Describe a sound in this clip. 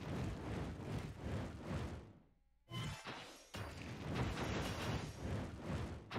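Fireballs roar and burst in a video game.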